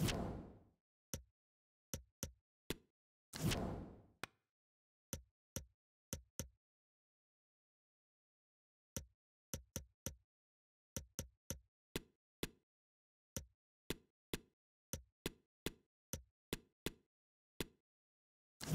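Short interface clicks tick as a menu is navigated.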